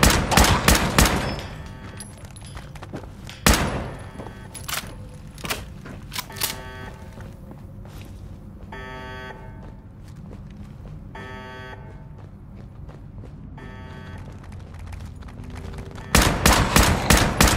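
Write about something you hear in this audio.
Rifle shots fire in rapid bursts.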